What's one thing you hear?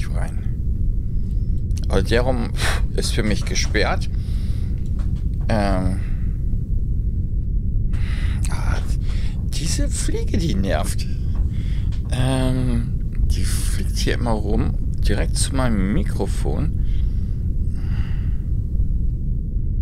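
A woman speaks calmly into a microphone, heard as over an online call.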